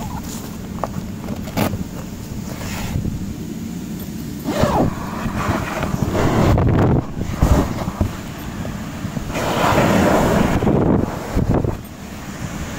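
Nylon fabric rustles and crinkles under a hand.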